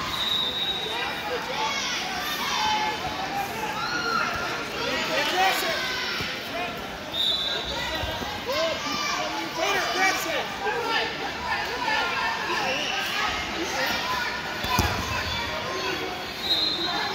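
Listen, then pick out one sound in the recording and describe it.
A crowd of spectators shouts and cheers throughout a large echoing hall.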